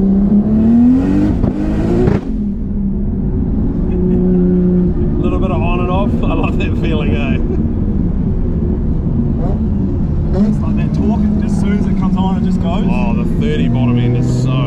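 A car engine hums steadily inside the cabin, rising and falling in pitch.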